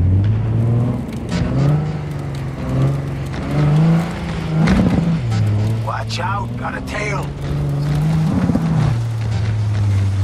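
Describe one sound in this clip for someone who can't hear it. A car engine hums and revs, rising and dropping in pitch as it shifts.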